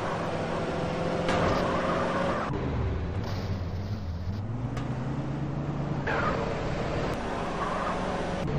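Tyres screech as a car skids around corners.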